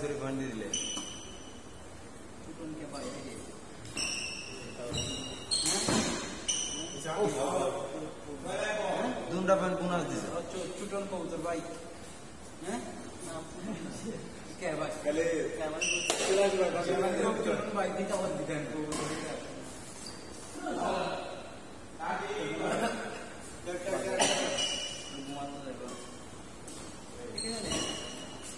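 A badminton racket strikes a shuttlecock with sharp pops in an echoing hall.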